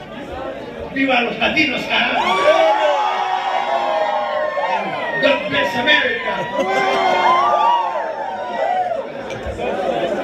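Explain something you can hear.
A young man sings into a microphone over a loudspeaker.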